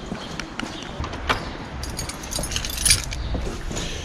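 A lock clicks as a door is unlocked.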